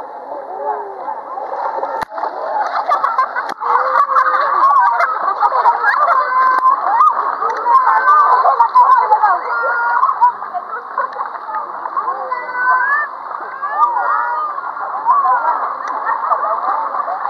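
Children shout and shriek playfully in a pool.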